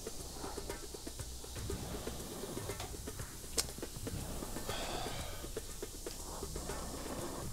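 A man speaks into a close microphone with animation.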